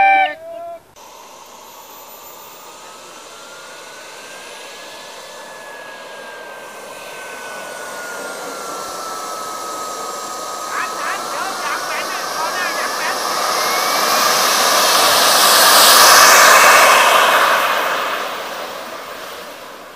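A small jet engine whines steadily, then roars louder and fades away.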